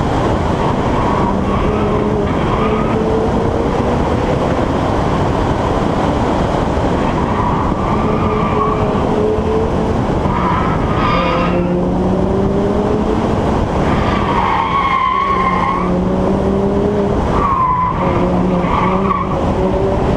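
A sports car engine roars loudly, revving up and down as it shifts gears.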